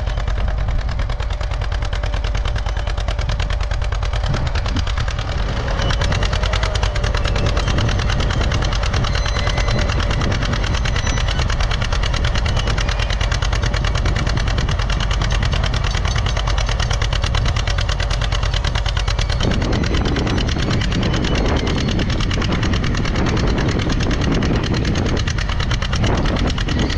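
A tractor engine chugs steadily close by.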